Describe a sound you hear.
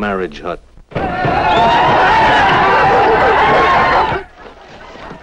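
A crowd shouts and cheers loudly.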